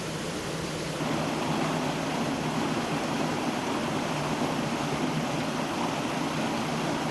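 Water splashes and rushes steadily over a wooden weir.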